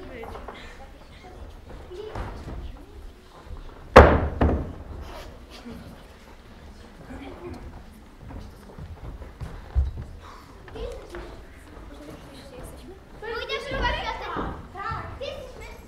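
Children talk and call out to each other.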